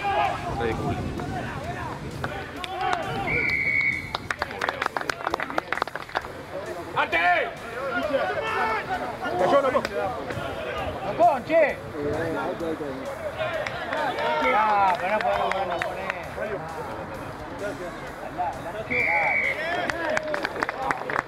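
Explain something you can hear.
Players shout and call out to each other outdoors.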